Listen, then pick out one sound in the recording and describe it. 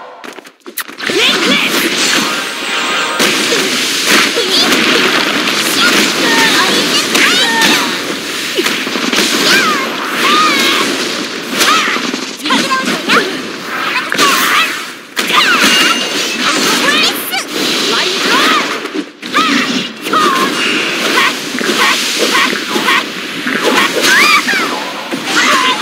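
Blades slash and strike again and again.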